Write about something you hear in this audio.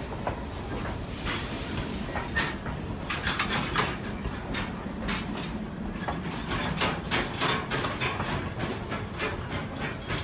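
Train wheels click and clatter on the rails as carriages roll past.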